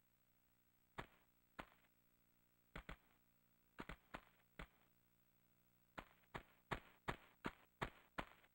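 Footsteps thud and scuff on stone, in bursts of quick steps.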